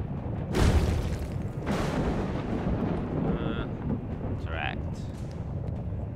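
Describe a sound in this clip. A low rumble drones steadily.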